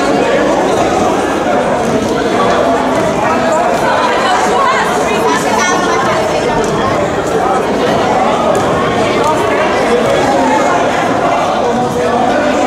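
A crowd of young people chatters and shouts in a large echoing hall.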